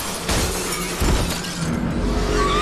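A young woman screams.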